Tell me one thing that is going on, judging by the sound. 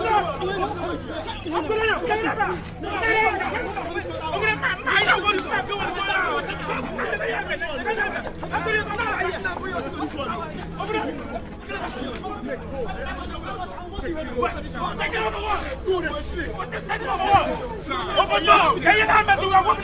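Several young men argue loudly.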